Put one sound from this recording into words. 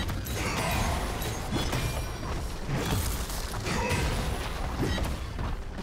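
Game fight sounds clash and burst as spells and attacks hit.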